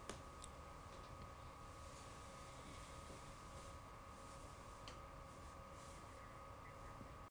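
A crowd of men murmur and talk in a room.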